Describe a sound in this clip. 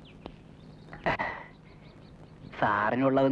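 A middle-aged man answers pleadingly.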